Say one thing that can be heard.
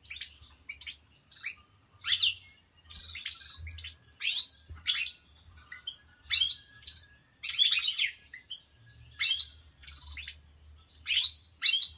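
Small caged finches chirp and twitter in quick bursts close by.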